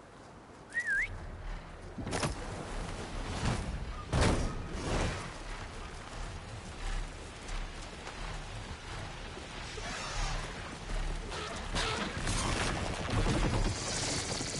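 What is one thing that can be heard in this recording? Strong wind rushes past steadily.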